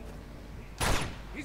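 A pistol fires a single shot.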